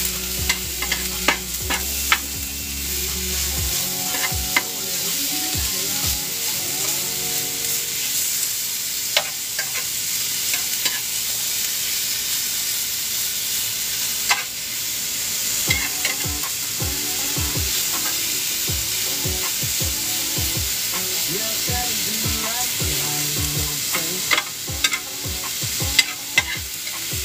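A metal utensil scrapes and clicks against a pan.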